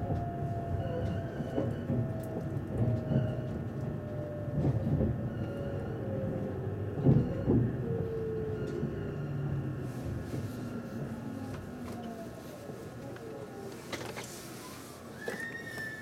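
A train rumbles along the rails and slows to a stop.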